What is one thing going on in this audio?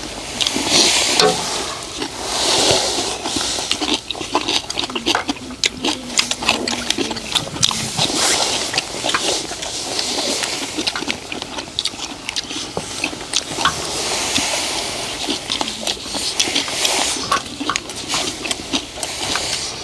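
Men chew food loudly, smacking close by.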